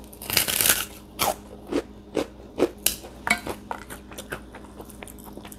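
A young woman chews crunchy food close by.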